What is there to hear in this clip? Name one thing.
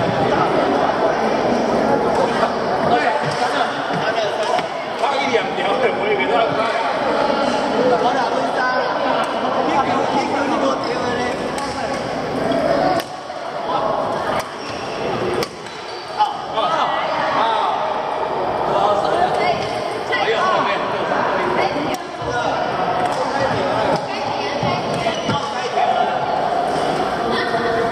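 Many people chatter and call out across a large echoing hall.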